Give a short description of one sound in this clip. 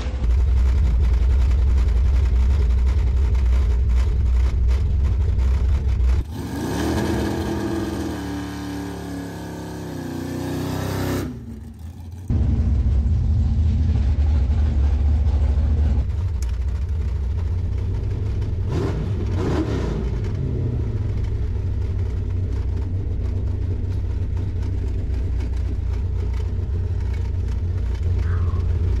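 A loud car engine rumbles and roars up close, heard from inside the car.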